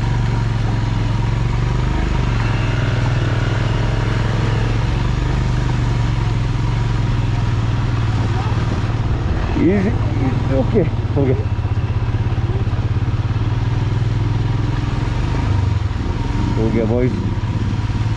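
A motorcycle engine rumbles and throbs steadily up close.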